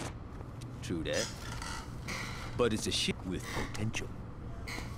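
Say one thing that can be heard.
Another man answers.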